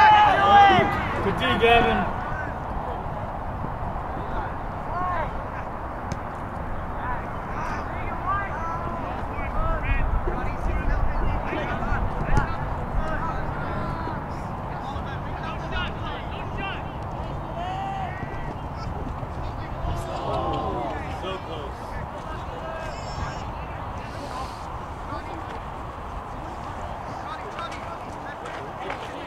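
Young men call out to each other across an open field.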